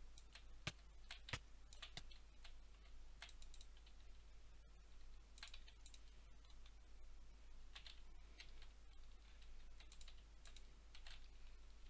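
Blocks clack softly as they are placed one after another.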